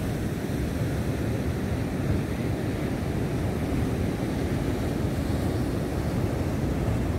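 Waves crash and wash over rocks steadily outdoors.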